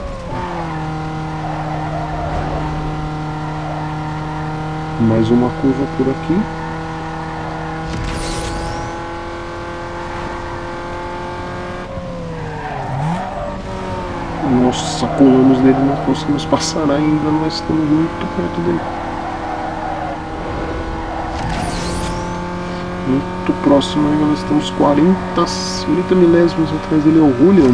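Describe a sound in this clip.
A car engine roars steadily at high revs, dropping in pitch as it shifts gear.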